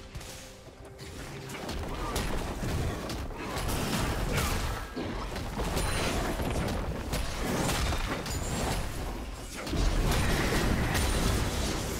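Video game combat sounds clash and crackle with spell effects.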